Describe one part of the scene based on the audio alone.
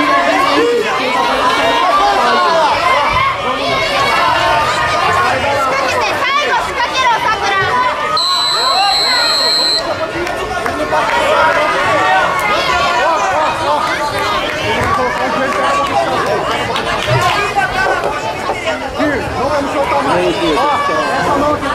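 A large crowd chatters and shouts in a big echoing hall.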